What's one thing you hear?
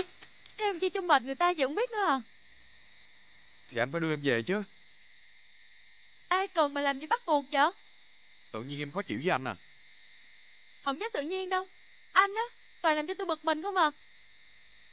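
A young woman speaks tearfully close by.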